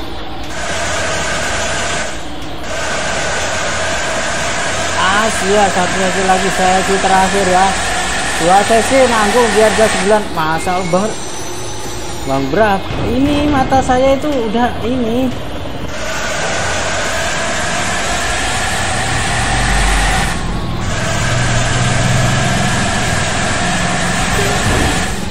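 A bus engine drones steadily.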